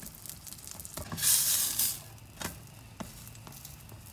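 A spatula scrapes against a metal frying pan.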